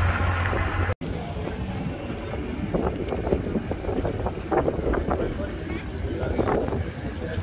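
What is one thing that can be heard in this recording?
Another pickup truck's engine hums as it rolls slowly nearby.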